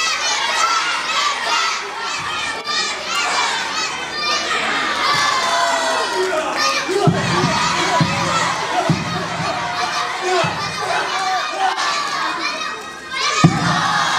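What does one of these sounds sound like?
A crowd of young people cheers and shouts loudly in a large echoing hall.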